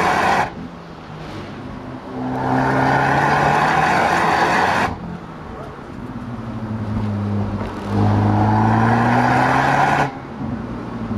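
Wind rushes loudly past the car in strong gusts.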